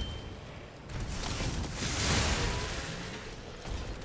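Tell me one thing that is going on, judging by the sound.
Fire roars from a flamethrower blast.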